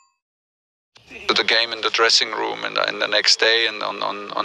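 A man speaks calmly and close into a microphone.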